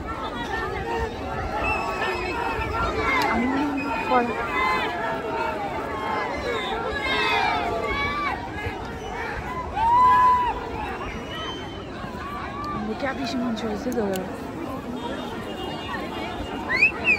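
A large crowd of men, women and children chatters all around outdoors.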